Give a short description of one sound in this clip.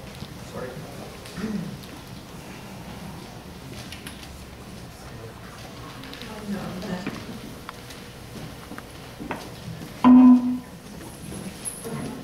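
An elderly man speaks calmly through a loudspeaker.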